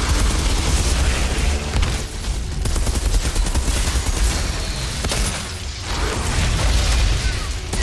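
Flames roar and crackle.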